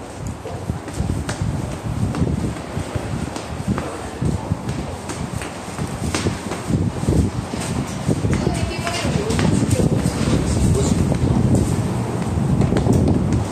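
Footsteps climb concrete stairs in an echoing underground stairwell.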